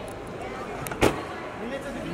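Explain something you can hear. A car door slams shut with a heavy thud.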